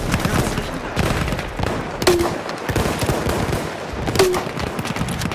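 A rifle fires loud, sharp single shots.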